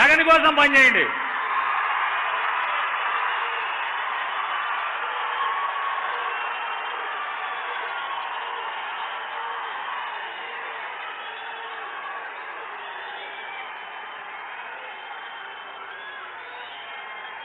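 A large crowd cheers and shouts, fading slowly.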